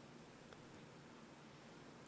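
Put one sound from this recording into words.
A man speaks quietly into a microphone.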